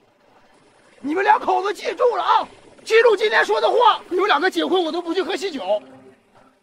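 A young man shouts loudly outdoors.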